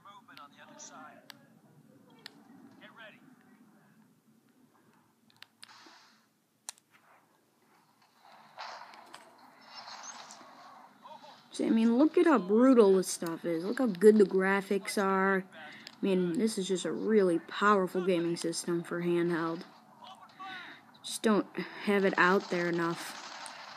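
Gunfire from a video game crackles through a small device speaker.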